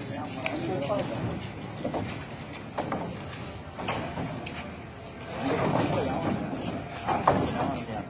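Wooden poles clatter and knock together as they are unloaded.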